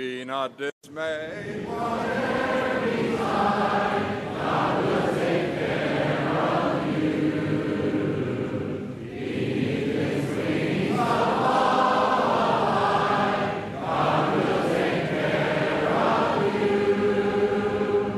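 A large crowd sings a hymn together.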